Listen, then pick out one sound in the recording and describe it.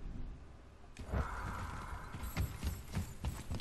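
Heavy blows thud and clang in a fight.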